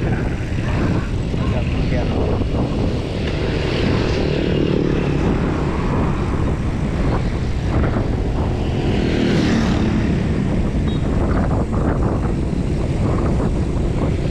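Wind rushes loudly past while riding a bicycle outdoors.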